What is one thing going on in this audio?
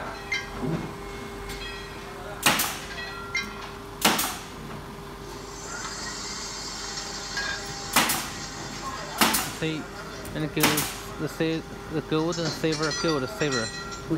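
A gaming machine plays electronic tones and clicks as its roulette wheel spins.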